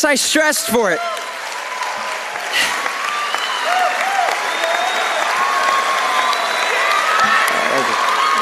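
An audience cheers loudly.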